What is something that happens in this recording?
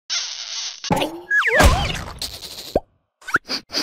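A cartoon creature laughs gleefully.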